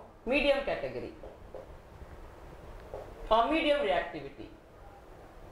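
A woman speaks calmly, as if teaching, close by.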